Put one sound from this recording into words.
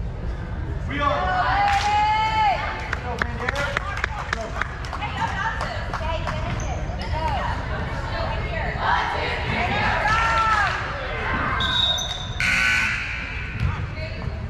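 Young women shout and cheer together in a large echoing gym.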